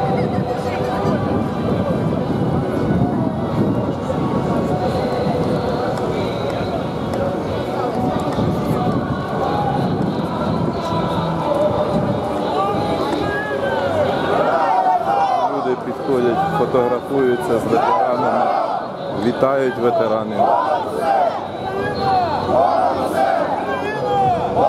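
Many footsteps shuffle on pavement.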